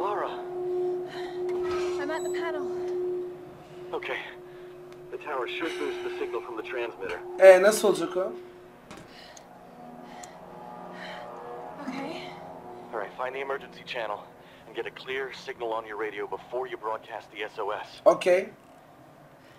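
A young man talks calmly through a crackly handheld radio.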